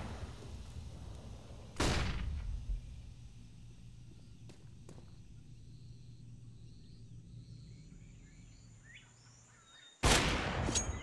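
A smoke grenade hisses steadily.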